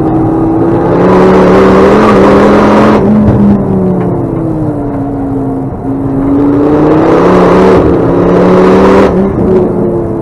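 Wind and tyre noise roar loudly inside the car.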